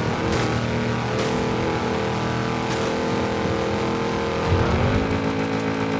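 An off-road truck engine roars at high speed.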